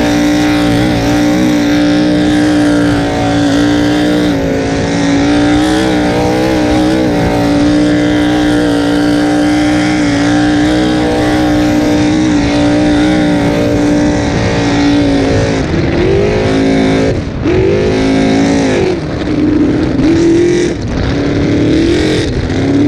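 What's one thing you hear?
A powerful boat engine roars loudly and rises and falls in pitch as the throttle changes.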